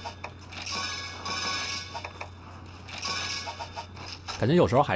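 A game menu plays short chiming tones.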